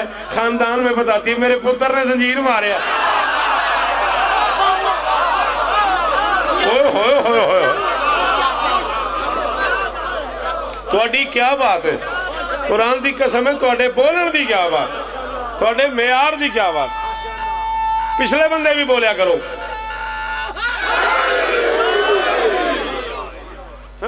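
A man speaks passionately into a microphone, heard through a loudspeaker with echo.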